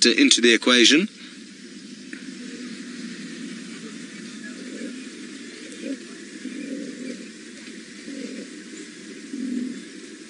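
Cheetahs tear and chew at a carcass up close.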